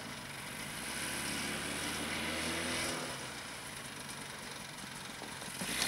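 A snowmobile engine drones steadily at a distance.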